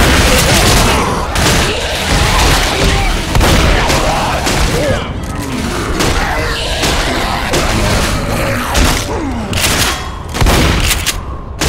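Zombies snarl and shriek.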